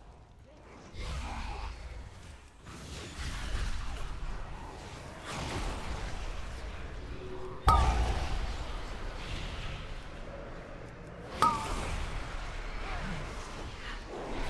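Magic spells whoosh and burst in a fight.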